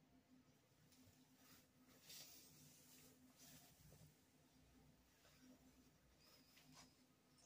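Fabric rustles as a shirt is pulled off close by.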